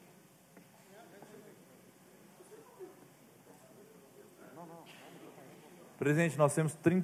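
Men murmur quietly in the background of a large hall.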